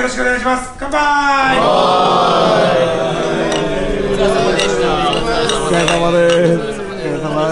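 A group of men cheer and shout together.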